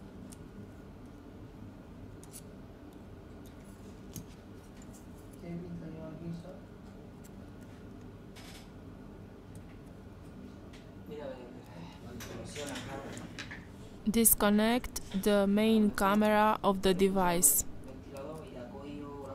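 Metal tweezers tick and click softly against small parts.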